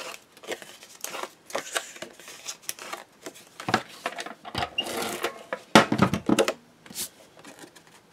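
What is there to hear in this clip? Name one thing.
Card stock rustles and slides on a table.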